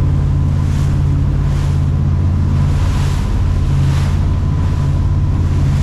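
Water splashes and rushes along a boat's hull in repeated bursts.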